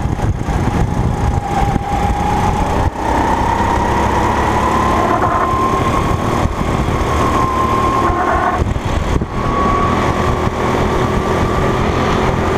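A go-kart engine buzzes loudly up close, its pitch slowly rising and dipping as it speeds up and slows.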